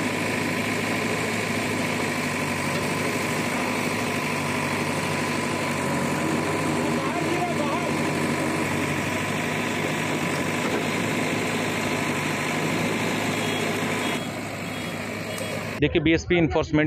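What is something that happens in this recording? A digger's engine rumbles steadily.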